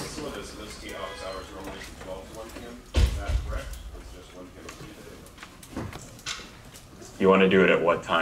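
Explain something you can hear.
A man speaks calmly through a lapel microphone in an echoing room.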